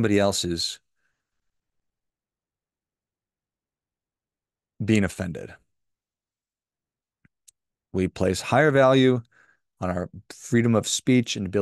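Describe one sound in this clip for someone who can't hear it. A man speaks calmly and close into a microphone, with pauses.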